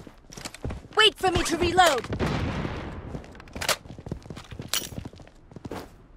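A rifle magazine clicks out and in during a reload.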